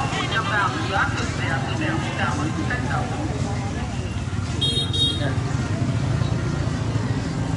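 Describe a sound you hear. A crowd chatters outdoors in a busy street.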